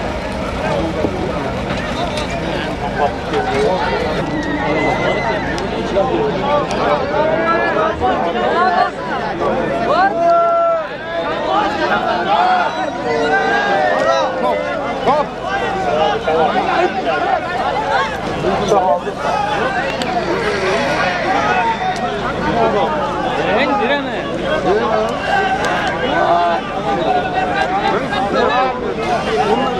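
A crowd of men shouts and calls out outdoors.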